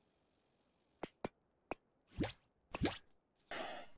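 Short clicks sound as building blocks snap into place.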